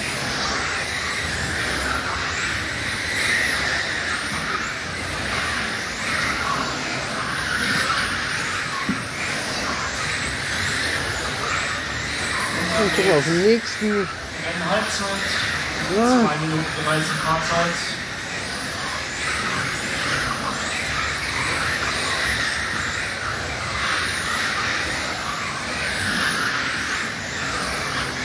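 Small electric model cars whine at high speed, their motors rising and falling in pitch as they race past.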